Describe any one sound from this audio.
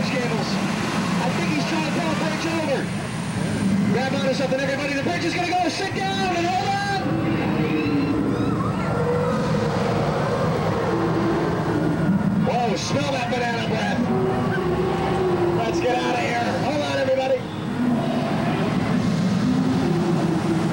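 A crowd of people murmurs and talks nearby.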